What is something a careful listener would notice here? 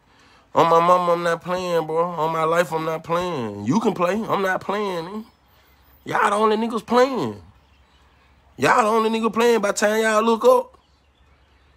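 A man sings close to the microphone.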